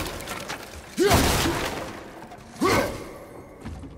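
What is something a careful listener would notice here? A heavy axe smashes into ice with a loud crack.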